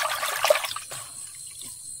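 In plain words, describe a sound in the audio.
Water splashes in a metal pot.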